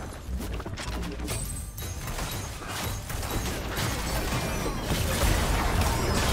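Weapons clash and strike in a game battle.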